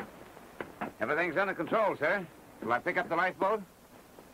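An elderly man speaks in a strained, emotional voice.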